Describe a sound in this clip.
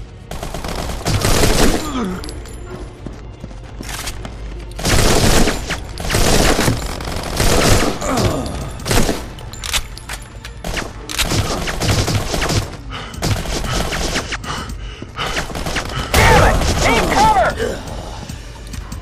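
An assault rifle fires in bursts of gunshots.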